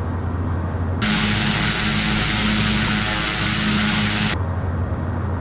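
A single-engine turboprop roars past, heard from outside the aircraft.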